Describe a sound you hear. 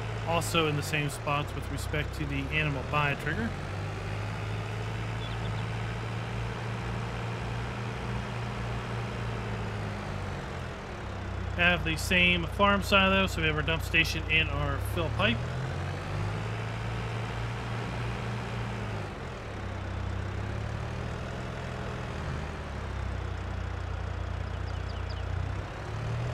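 A small utility vehicle engine hums steadily as it drives.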